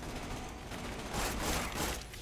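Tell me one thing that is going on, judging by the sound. Electric crackling zaps from an energy weapon.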